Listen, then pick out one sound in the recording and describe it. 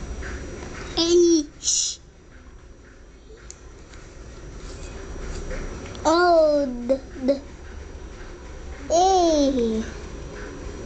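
A child speaks in drawn-out, sing-song bursts close by.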